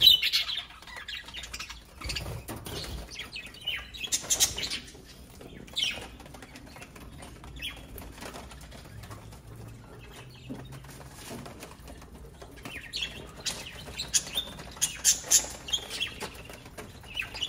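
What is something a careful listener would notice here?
Budgerigars chirp and chatter close by.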